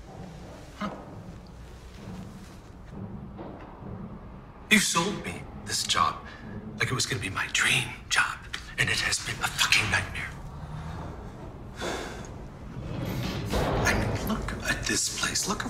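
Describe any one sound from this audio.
A middle-aged man speaks intensely and forcefully, close by.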